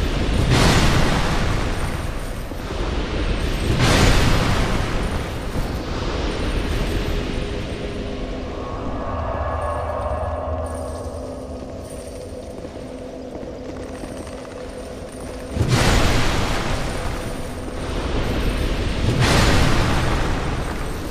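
Metal weapons clash and strike in a fight.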